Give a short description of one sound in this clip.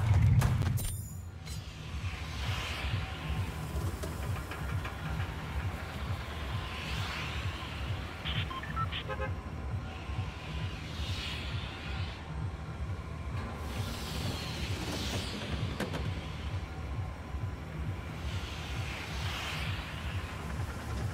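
Wind rushes past in gusts.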